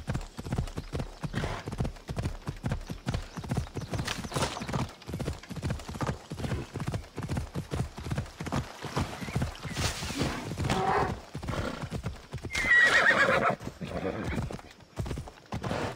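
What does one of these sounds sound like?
A horse gallops, its hooves thudding steadily on dirt.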